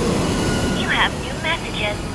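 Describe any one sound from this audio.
A jet engine thrusts with a loud roar.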